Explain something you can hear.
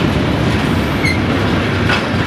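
Wheels squeal faintly against the rails.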